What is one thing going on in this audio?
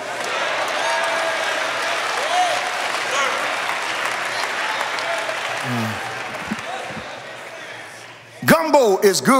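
A crowd laughs and murmurs warmly.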